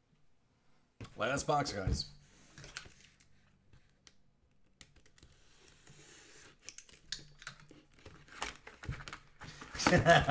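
Plastic wrap crinkles and rustles as a box is handled.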